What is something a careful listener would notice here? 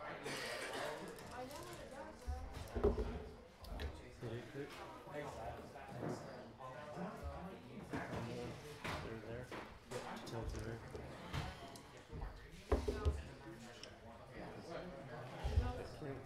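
Small plastic game pieces click on a table.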